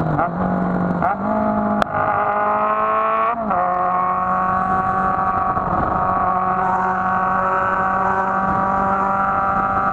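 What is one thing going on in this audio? A motorcycle engine hums close by, its pitch shifting with gear changes.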